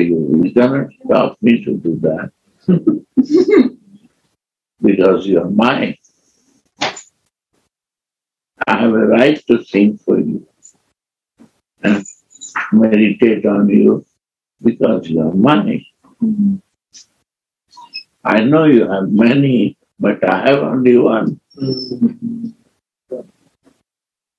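An elderly man speaks calmly and slowly through an online call, with long pauses.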